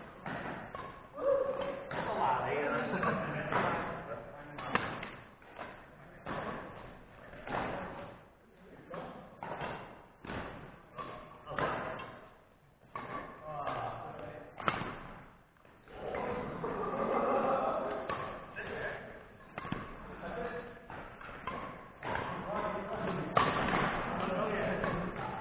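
Young men talk and call out to each other in a large echoing hall.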